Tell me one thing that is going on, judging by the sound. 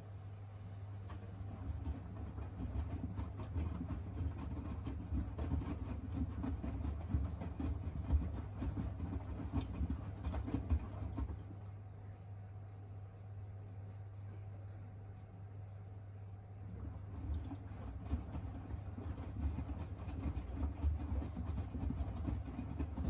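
Wet laundry tumbles and thumps inside a washing machine drum.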